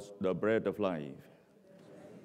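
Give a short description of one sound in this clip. A middle-aged man speaks through a microphone in a large echoing hall.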